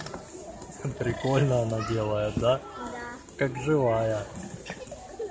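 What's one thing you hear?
A baby doll cries and wails through a small toy speaker.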